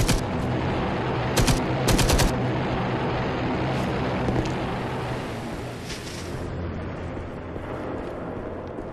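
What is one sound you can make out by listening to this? Footsteps crunch over rubble and stone.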